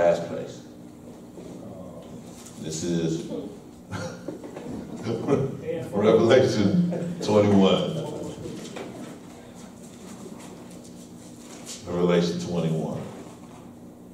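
A man speaks into a microphone in a calm, measured voice with pauses.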